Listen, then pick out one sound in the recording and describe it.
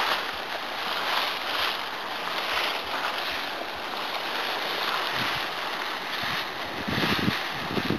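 Dry leaves rustle and crunch as a person crawls over them.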